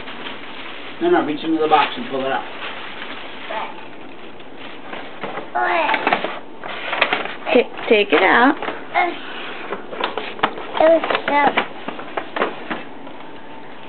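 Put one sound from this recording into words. A young boy talks and squeals excitedly nearby.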